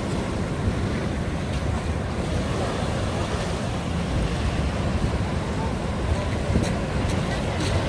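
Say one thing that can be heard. Waves wash onto a rocky shore and break steadily.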